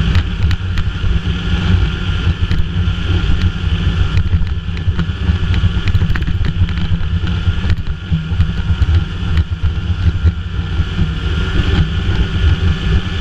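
Wind buffets the microphone of a moving snowmobile.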